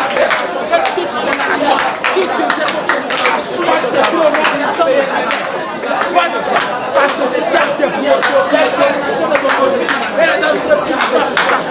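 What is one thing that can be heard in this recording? Women sing together loudly.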